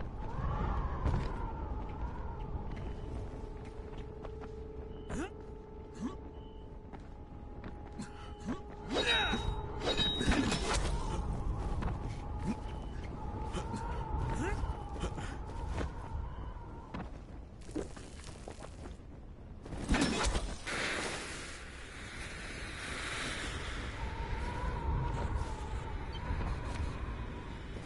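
Quick footsteps clatter across roof tiles.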